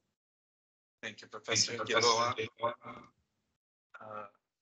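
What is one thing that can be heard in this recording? A man speaks cheerfully over an online call.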